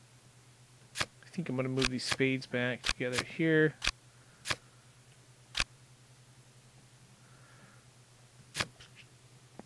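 Playing cards snap into place with short, sharp clicks.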